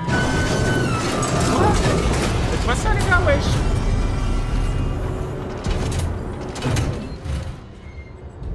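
A heavy metal door slides open with a loud mechanical rumble.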